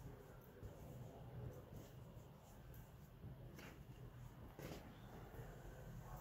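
Fabric rustles softly as hands handle it.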